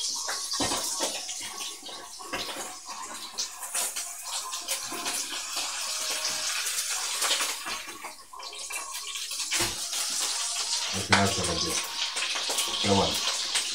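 A metal utensil clinks and scrapes against a pan.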